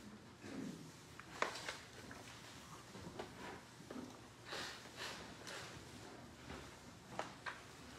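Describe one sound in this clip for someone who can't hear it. Footsteps knock softly on a wooden floor in an echoing room.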